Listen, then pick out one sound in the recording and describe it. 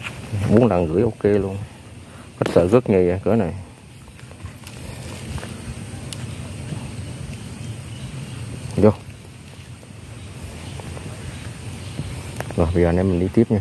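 A plastic net bag rustles.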